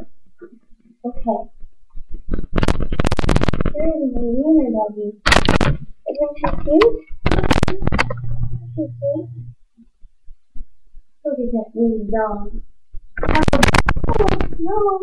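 A young girl talks and sings animatedly close to a microphone.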